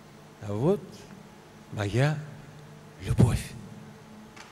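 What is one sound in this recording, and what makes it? An elderly man speaks expressively into a microphone.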